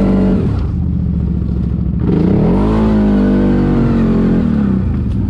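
An all-terrain vehicle engine rumbles close by and revs up, then settles.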